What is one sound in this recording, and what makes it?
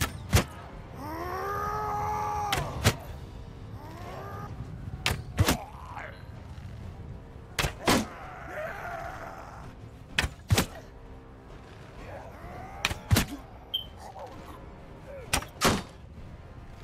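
A bowstring snaps sharply as arrows are loosed, again and again.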